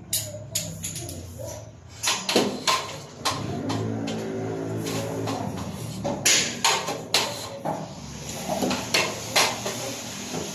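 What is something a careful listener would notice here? Cables rustle and knock against a metal frame as they are pulled.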